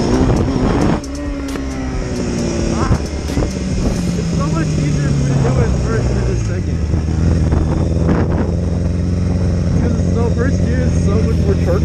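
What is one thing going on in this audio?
A motorcycle engine hums and revs, shifting pitch as the bike rides slowly.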